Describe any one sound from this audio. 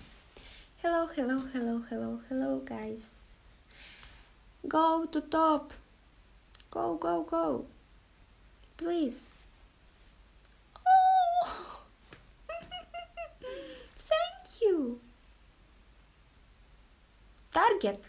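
A young woman speaks close to a microphone, with animation and pauses.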